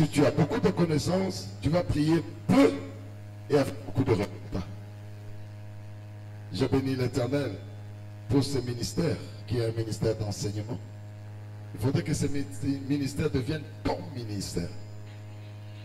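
A man preaches with animation into a microphone over loudspeakers.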